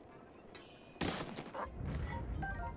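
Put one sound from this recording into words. A burst goes off with a sharp crackling whoosh.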